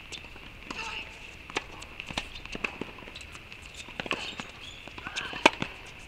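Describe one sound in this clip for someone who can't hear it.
Tennis shoes squeak on a hard court.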